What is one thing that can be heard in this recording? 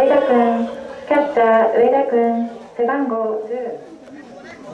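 Young men chant and shout loudly nearby.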